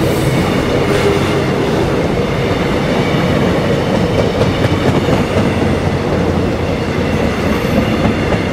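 A train rumbles past on the tracks close by.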